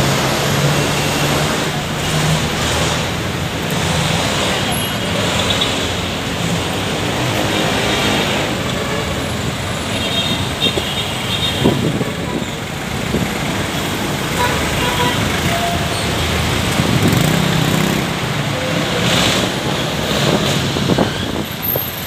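Traffic rumbles steadily along a busy road nearby.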